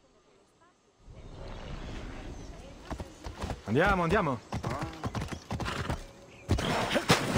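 A horse's hooves clop on stone.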